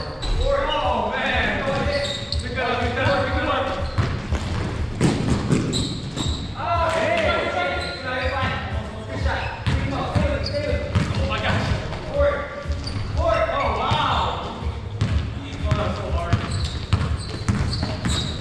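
Young men call out to each other across a large echoing gym.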